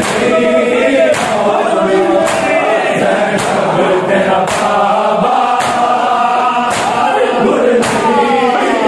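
Men beat their chests in a steady rhythm, with loud slaps.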